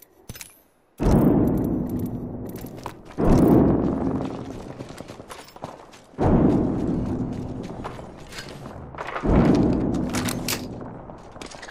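Loud gunshots boom with a long echoing ring.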